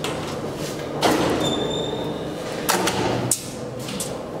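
A metal cabinet door swings open with a clatter.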